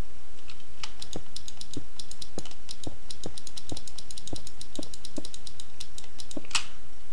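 Stone blocks knock softly as they are placed one after another.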